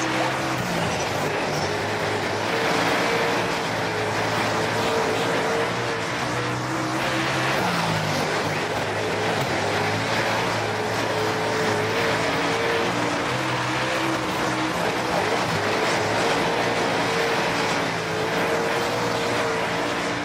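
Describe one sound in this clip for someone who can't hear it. Tyres skid and crunch over loose dirt.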